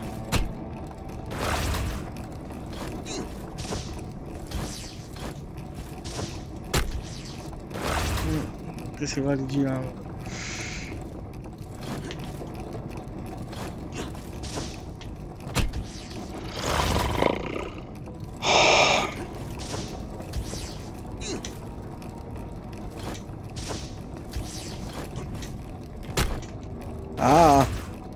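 Heavy wooden mechanisms thump and clank repeatedly.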